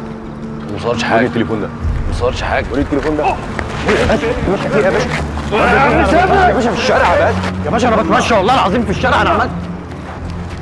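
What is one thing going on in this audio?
A man shouts angrily nearby.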